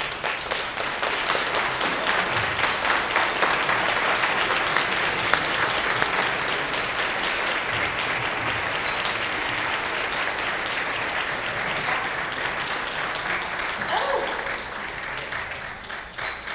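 An audience applauds loudly in a large hall, then the applause fades.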